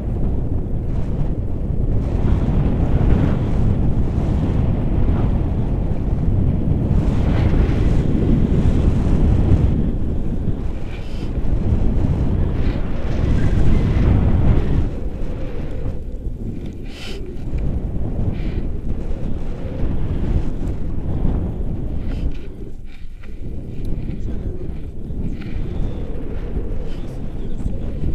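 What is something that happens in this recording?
A man speaks loudly over the wind.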